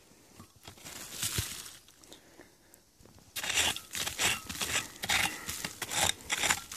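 A small hand fork scrapes and digs into dry, crumbly soil.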